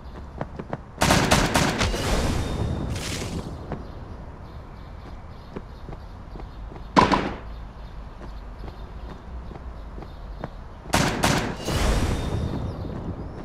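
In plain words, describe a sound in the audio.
A game opponent bursts apart with a loud splat.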